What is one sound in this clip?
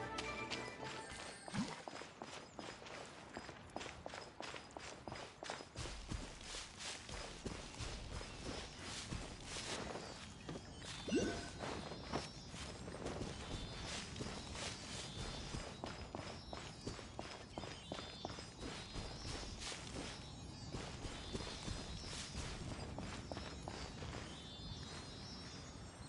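Quick footsteps patter over grass and rock.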